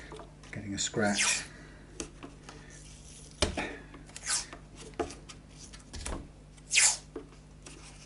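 Adhesive tape rips and peels in short bursts.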